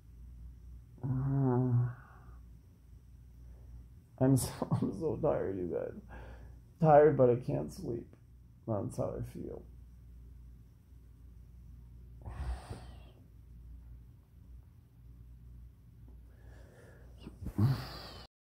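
A man talks quietly and close by, in a sleepy, murmuring way.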